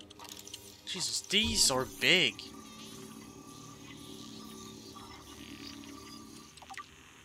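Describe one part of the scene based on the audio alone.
A handheld scanner whirs and chimes as it scans.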